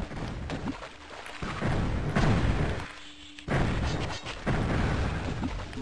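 A crossbow in a game fires with sharp twangs.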